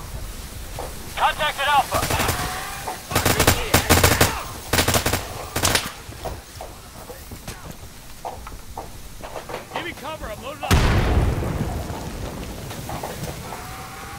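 A loud explosion booms nearby, then rumbles and fades.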